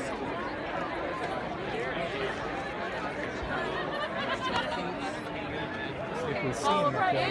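A crowd of men and women chatter and talk over one another nearby, outdoors.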